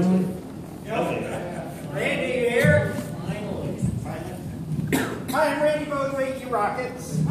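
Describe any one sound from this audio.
A man speaks into a microphone over loudspeakers in an echoing hall.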